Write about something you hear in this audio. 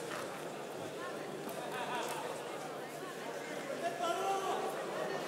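Voices from the crowd call out over the murmur.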